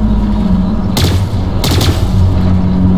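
Gunshots crack in short bursts.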